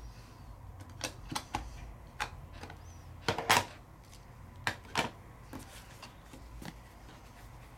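Paper and card tap and rustle on a table.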